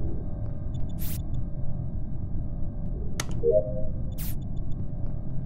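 A short electronic whoosh sounds as a game panel opens and closes.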